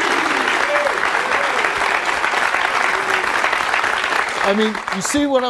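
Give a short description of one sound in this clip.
A studio audience applauds and cheers loudly.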